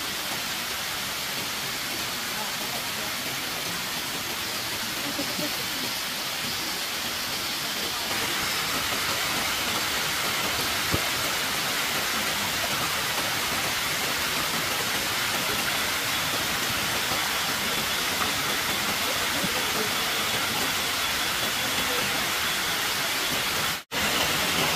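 Hands swish and splash in shallow water.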